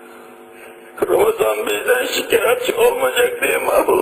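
An elderly man speaks forcefully.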